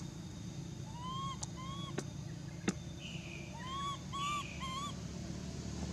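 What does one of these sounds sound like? A baby monkey squeaks in short high chirps.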